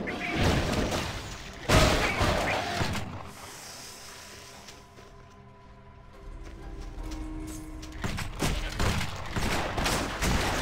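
Weapons clash and magic bursts crackle in a fight.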